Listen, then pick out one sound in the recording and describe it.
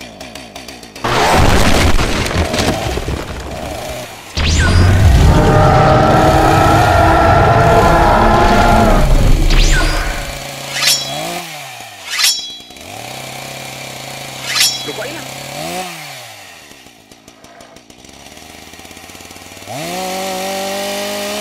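A chainsaw revs and roars loudly.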